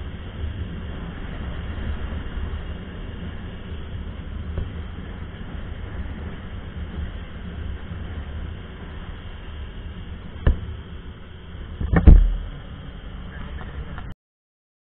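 Wind rushes and buffets past at speed.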